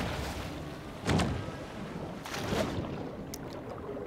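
Water splashes as a shark plunges in.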